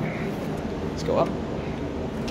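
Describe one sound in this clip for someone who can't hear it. A finger presses an elevator call button with a soft click.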